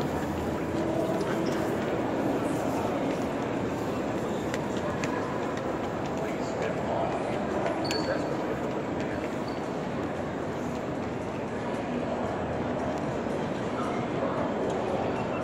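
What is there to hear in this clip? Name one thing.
A crowd murmurs and echoes in a large hall.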